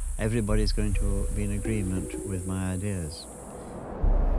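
An elderly man speaks calmly, close by.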